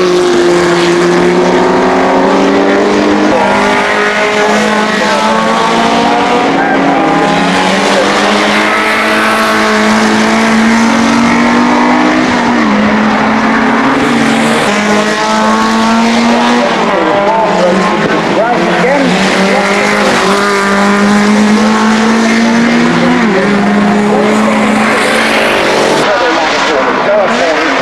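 Racing car engines roar and rev as cars speed past.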